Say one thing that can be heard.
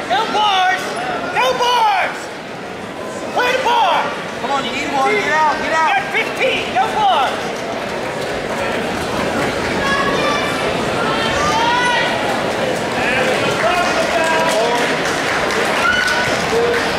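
A crowd murmurs and chatters throughout in a large echoing hall.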